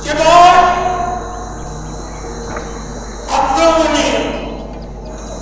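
An elderly man chants slowly into a microphone, heard over loudspeakers.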